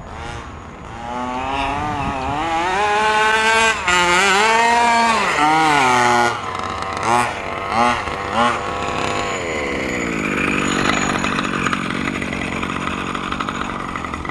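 A two-stroke large-scale RC buggy revs up and down as it speeds around.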